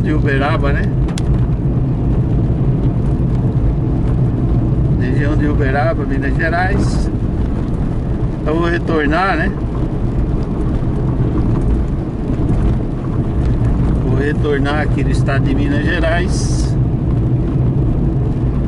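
Tyres roll on a wet road.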